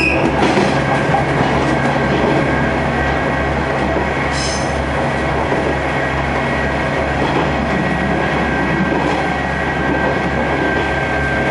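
Train wheels squeal steadily on the rails.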